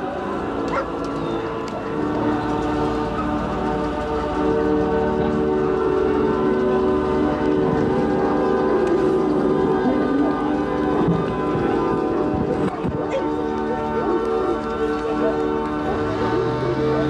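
An outboard motor idles on an inflatable boat.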